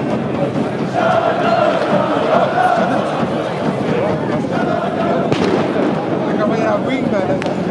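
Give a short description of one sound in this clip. A large crowd chants and sings loudly outdoors.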